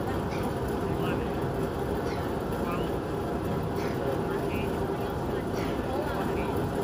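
A large fan roars steadily outdoors.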